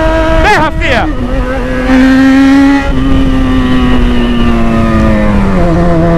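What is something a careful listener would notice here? A motorcycle engine hums close by and revs up and down.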